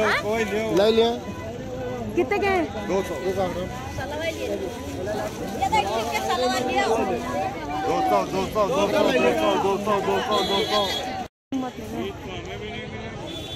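A crowd of men and women chatter close by, with many voices overlapping.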